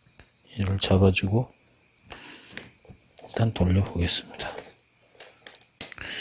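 Plastic parts click and rattle in handling.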